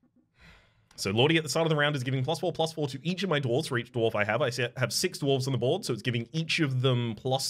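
A young man talks quickly and with animation into a close microphone.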